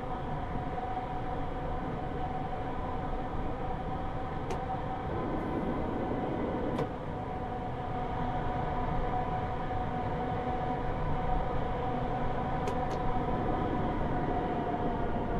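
Train wheels rumble and click over the rails.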